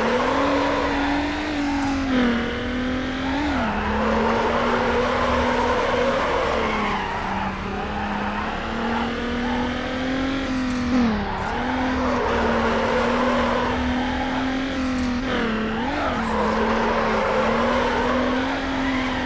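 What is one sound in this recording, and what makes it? A car engine roars and revs steadily, shifting gears.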